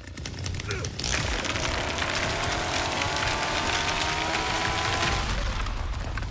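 A chainsaw roars loudly as it cuts through a barrier.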